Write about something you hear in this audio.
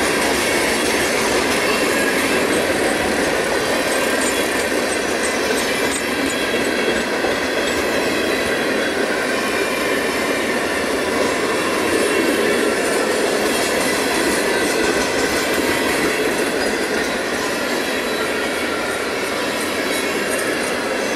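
Freight cars rumble and clatter past on the rails, close by.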